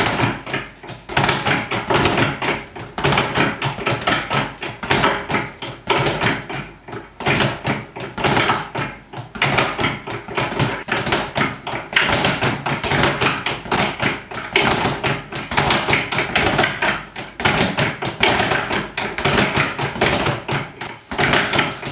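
A punching bag rattles in fast, rhythmic drumming bursts.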